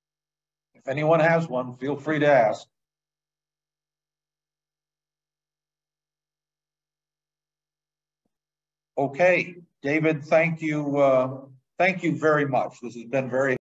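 A man speaks calmly over an online call, pausing in between.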